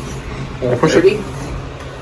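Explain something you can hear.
A finger presses an elevator button.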